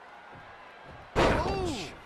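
A body slams down hard onto a wrestling mat.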